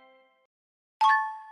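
Gems jingle as they are collected.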